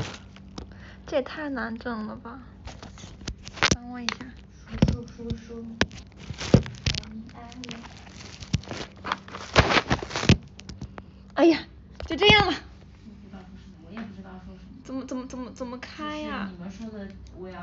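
A young woman talks casually close to a phone microphone.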